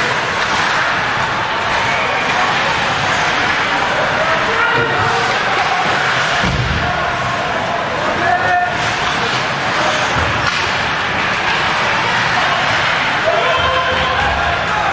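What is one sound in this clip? A crowd of spectators chatters and calls out in a large echoing rink.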